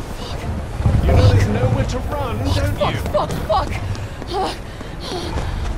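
A young woman swears in a panicked, breathless voice.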